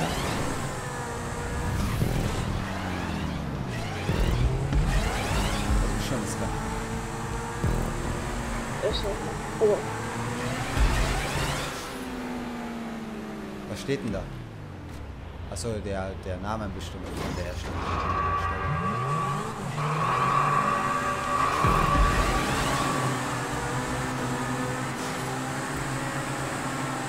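A sports car engine revs and roars, rising and falling in pitch as gears shift.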